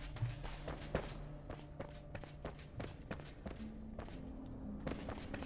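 Footsteps thud steadily on a stone floor.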